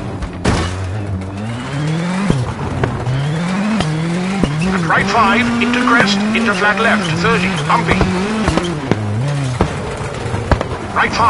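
Tyres crunch and skid over loose gravel.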